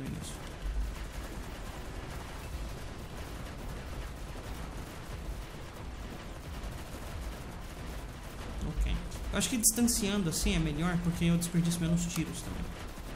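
Explosions and gunfire crackle and boom.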